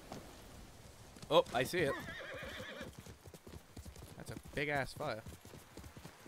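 A horse's hooves thud on the ground at a gallop.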